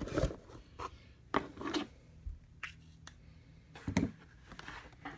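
Hands knock and shuffle against a cardboard box.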